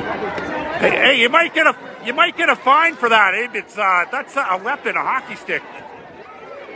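A woman close by shouts and cheers loudly.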